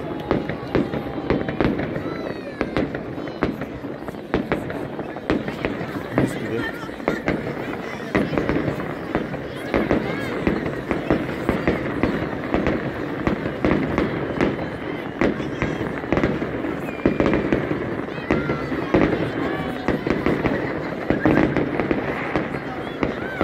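Fireworks bang and crackle in the distance, again and again.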